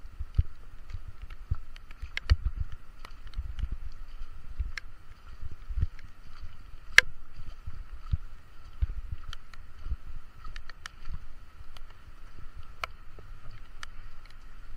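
Raindrops tap sharply against the microphone.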